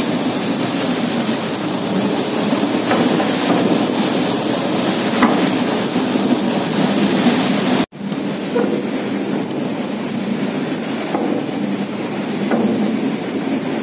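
Waves rush and splash against a boat's hull outdoors in wind.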